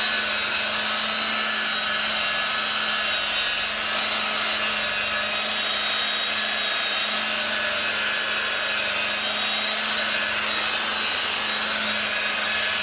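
A polishing machine whirs steadily against a car door.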